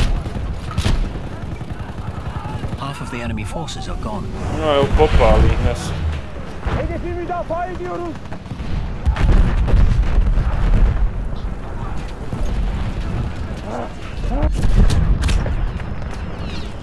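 Gunshots crack out in bursts.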